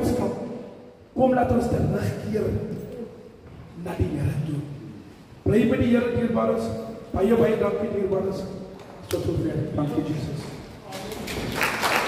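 A man speaks with animation into a microphone in an echoing hall.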